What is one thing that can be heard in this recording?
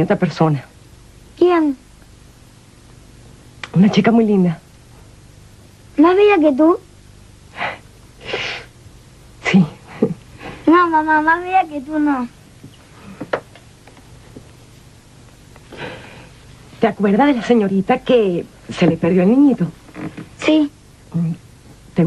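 A woman speaks in a tearful, pleading voice.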